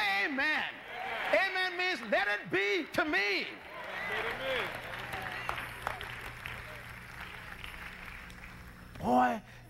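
A man preaches forcefully into a microphone.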